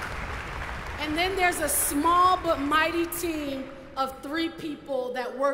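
A woman speaks with animation through a microphone in a large hall.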